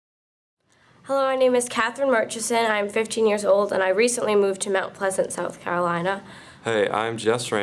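A teenage girl talks calmly and closely.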